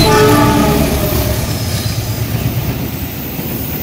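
A diesel-electric locomotive engine roars past at speed.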